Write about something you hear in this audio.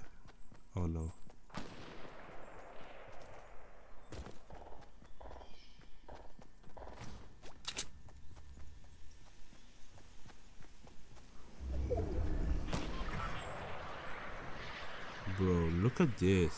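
Footsteps run quickly over grass and pavement.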